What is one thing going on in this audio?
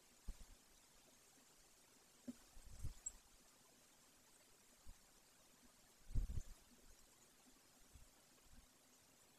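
A large bird shuffles and rustles in a nest of dry twigs.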